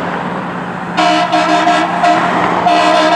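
A fire truck air horn blasts loudly.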